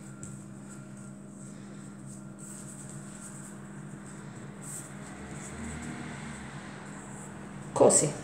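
Hands roll soft dough on a table with a faint rubbing.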